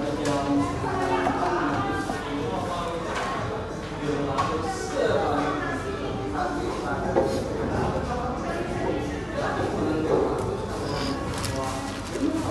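A young child talks softly close by.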